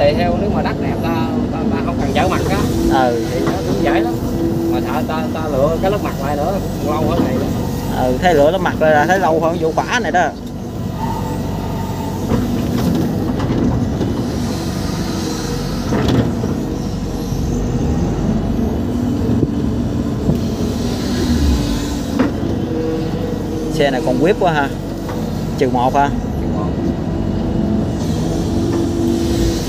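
A diesel engine rumbles steadily close by.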